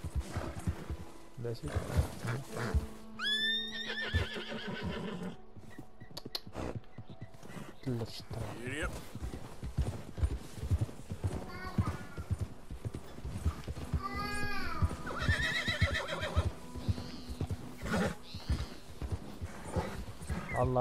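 Horse hooves crunch through deep snow at a steady walk.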